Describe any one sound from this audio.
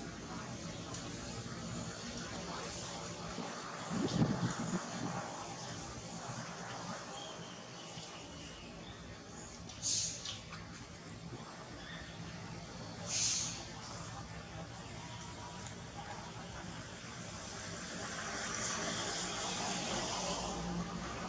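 A baby monkey suckles softly at close range.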